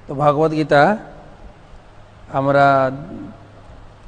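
A man speaks calmly into a clip-on microphone, in short phrases with pauses.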